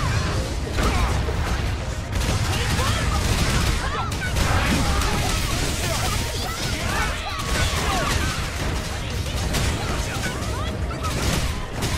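Game battle effects crash and boom loudly and steadily.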